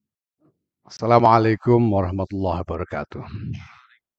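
An elderly man speaks calmly into a microphone.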